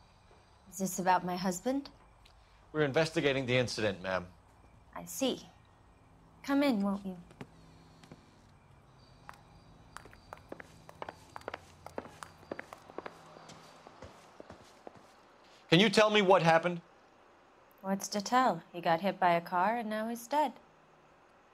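A woman speaks calmly and quietly.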